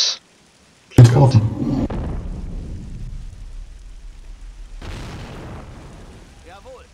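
An explosion booms loudly and rumbles as it slowly fades.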